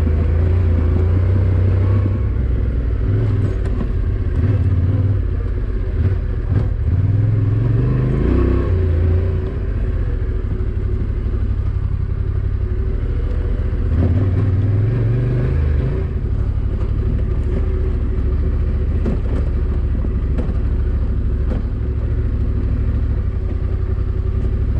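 Tyres crunch and bump over a rough dirt track.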